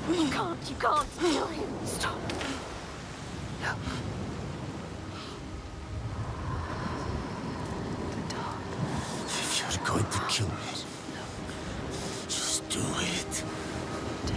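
A man speaks weakly and strained, close by.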